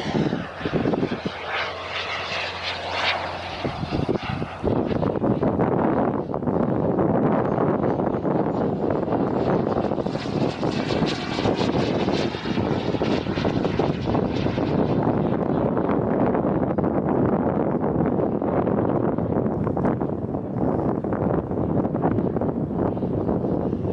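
A jet aircraft roars as it flies overhead.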